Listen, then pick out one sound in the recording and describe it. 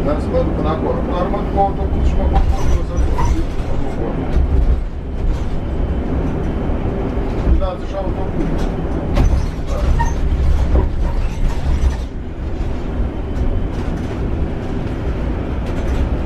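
Loose parts rattle and clatter inside the bus.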